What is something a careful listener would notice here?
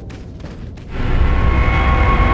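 A loud musical jingle plays.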